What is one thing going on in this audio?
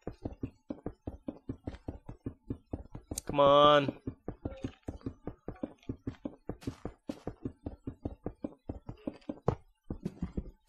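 A pickaxe taps rapidly against stone.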